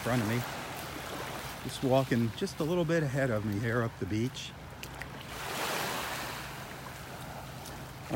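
Small waves lap gently on the shore.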